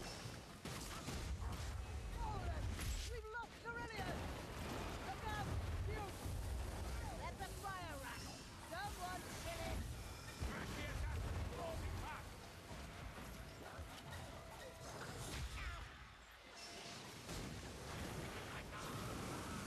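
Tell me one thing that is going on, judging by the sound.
Monsters snarl and roar.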